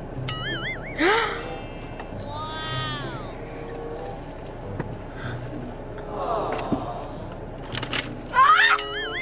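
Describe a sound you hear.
A young girl squeals with delight.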